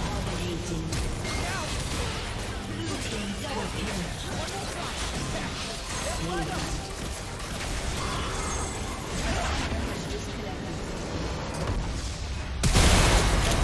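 Game spells whoosh and clash in a rapid battle.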